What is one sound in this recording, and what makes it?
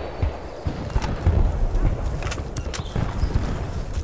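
A rifle magazine clicks out and snaps back in.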